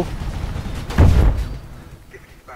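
A thud sounds as someone lands from a jump.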